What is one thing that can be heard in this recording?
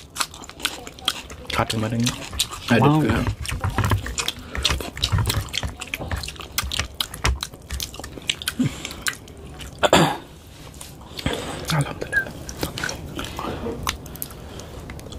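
A man chews food noisily close to a microphone.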